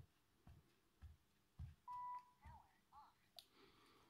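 A button clicks.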